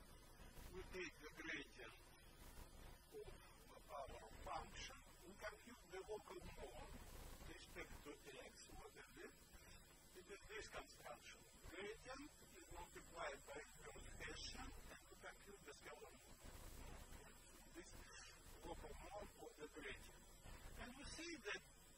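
An elderly man lectures calmly through a microphone.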